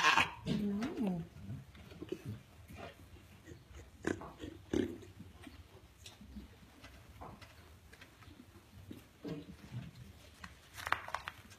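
A goat munches and crunches feed.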